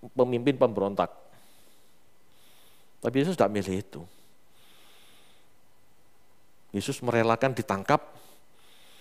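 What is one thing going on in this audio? A middle-aged man speaks calmly into a headset microphone in short phrases with pauses.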